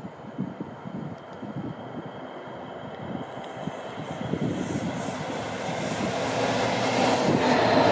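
A diesel train approaches, rumbling and growing steadily louder.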